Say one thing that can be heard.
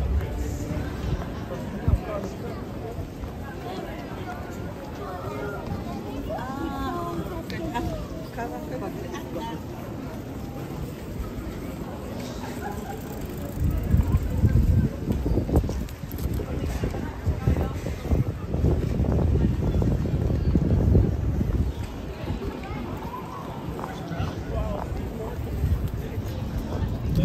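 A crowd of people murmurs and chatters outdoors along a busy street.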